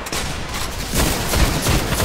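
An explosion booms with a crackling burst.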